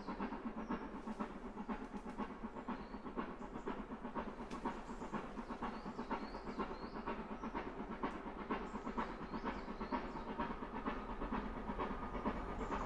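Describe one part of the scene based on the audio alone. A steam locomotive chuffs hard and rhythmically as it approaches.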